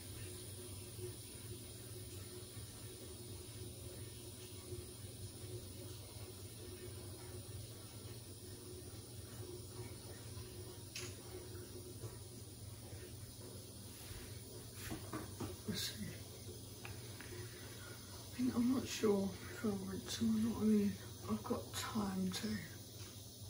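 A washing machine drum turns with a low steady hum.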